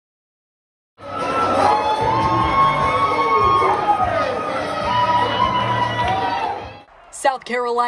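A group of men cheer and sing loudly.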